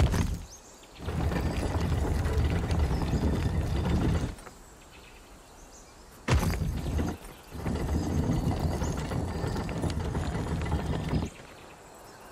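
A heavy stone dial grinds and scrapes as it turns.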